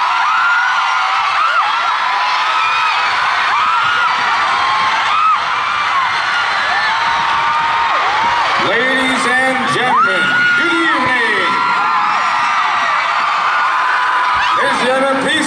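A large crowd of young women screams and cheers loudly in a big echoing arena.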